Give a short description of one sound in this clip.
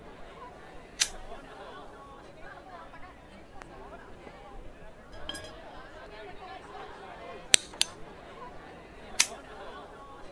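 Glass candle holders clink against each other.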